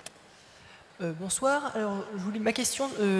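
A woman speaks into a microphone, heard through loudspeakers in a large echoing hall.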